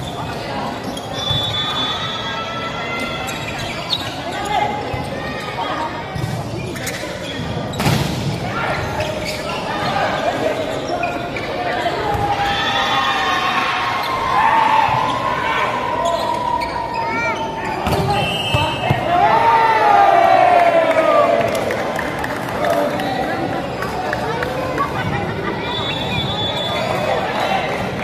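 Young men shout and call out across a large echoing hall.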